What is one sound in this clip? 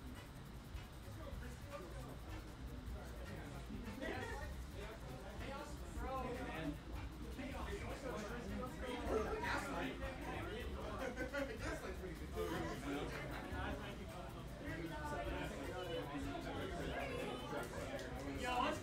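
A crowd of people chatters nearby in a busy room.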